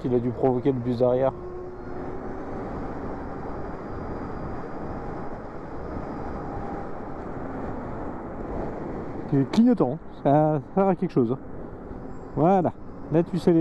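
Wind rushes steadily past a moving motorcycle.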